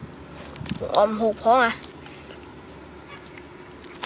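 Hands dig and squelch in wet mud.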